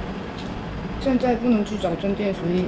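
A young woman speaks calmly close to the microphone.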